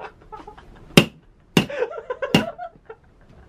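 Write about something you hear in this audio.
A toy hammer squeaks as it strikes.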